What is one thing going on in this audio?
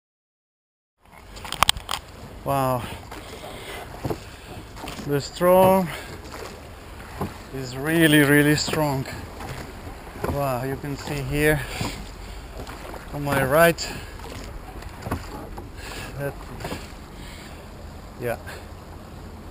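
Oars knock and creak in their locks as a boat is rowed.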